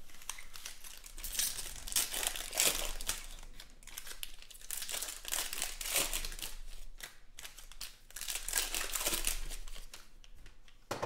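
Foil wrappers crinkle and tear as packs are ripped open.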